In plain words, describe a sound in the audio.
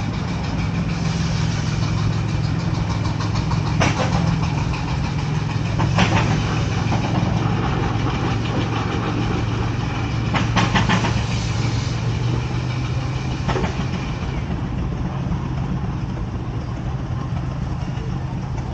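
A steam traction engine idles nearby with a low, steady rumble.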